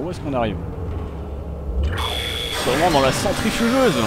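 A large metal door rumbles and hisses as it opens.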